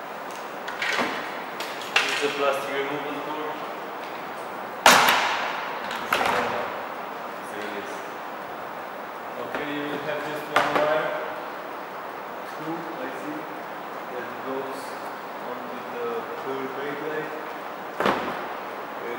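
Plastic parts of a car spoiler click and knock.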